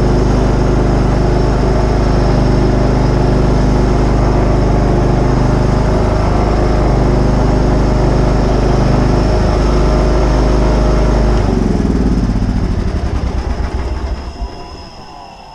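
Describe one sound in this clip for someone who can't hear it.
A riding mower engine rumbles steadily up close, then winds down and stops.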